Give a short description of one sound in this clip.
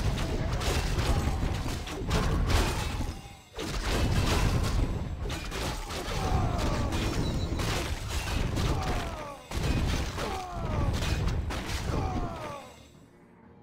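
Swords clash and magic blasts crackle in a busy battle.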